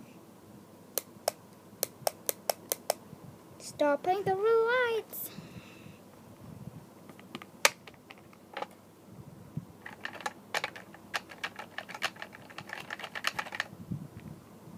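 Small plastic toys tap and click against a hard surface.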